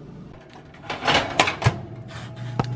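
A small oven door clacks shut.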